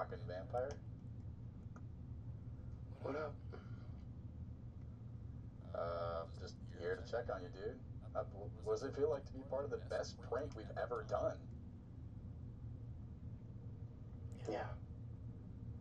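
A man talks in short bursts close to a microphone, with pauses.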